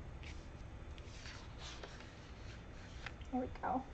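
A sheet of paper slides and rustles on a table.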